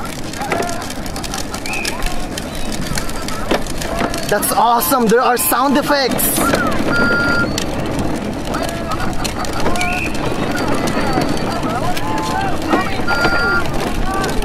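Plastic wheels of a toy car rumble over pavement.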